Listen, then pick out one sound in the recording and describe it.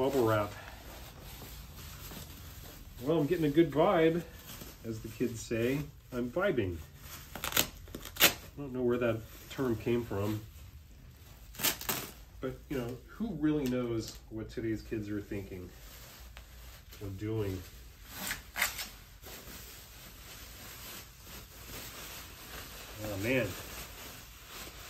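Plastic bubble wrap rustles and crinkles.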